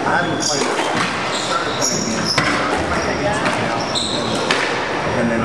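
A squash ball smacks sharply against the walls in an echoing court.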